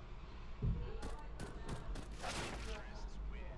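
Pistol shots crack in quick succession, close by.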